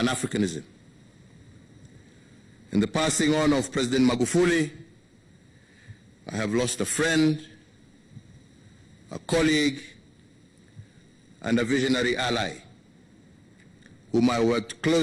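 A middle-aged man speaks slowly and solemnly into a microphone, with long pauses.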